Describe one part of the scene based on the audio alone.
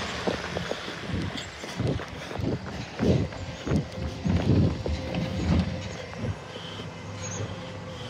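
Footsteps scuff on pavement.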